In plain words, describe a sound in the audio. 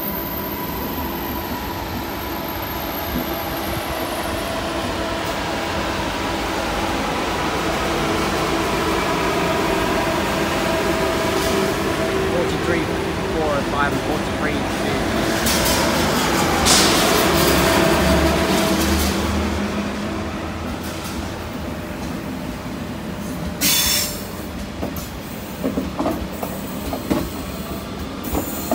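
A train rolls slowly past with a steady rumble and hum.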